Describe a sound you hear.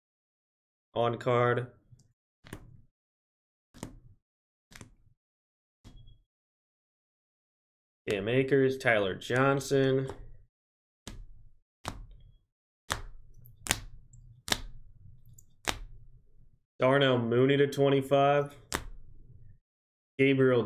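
Plastic card cases click and tap as hands handle them.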